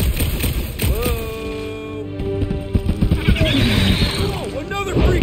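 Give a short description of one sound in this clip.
A large creature screeches and growls.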